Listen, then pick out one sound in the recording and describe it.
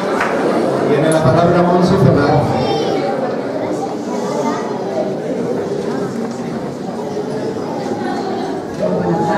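A woman speaks into a microphone over loudspeakers, echoing in the hall.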